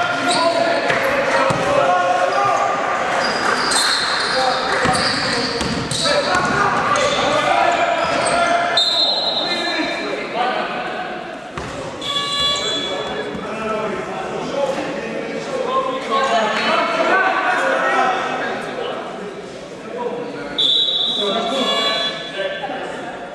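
A crowd of young men and spectators shout and chatter in a large echoing hall.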